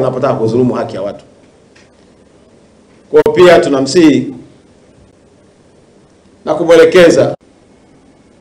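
A man speaks calmly into microphones in short phrases, with long pauses between them.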